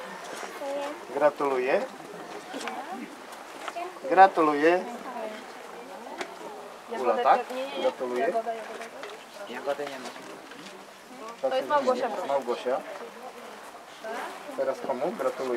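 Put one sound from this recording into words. Young girls chatter and talk nearby outdoors.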